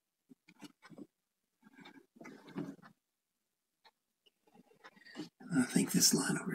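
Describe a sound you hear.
A paintbrush scrubs and dabs against a canvas.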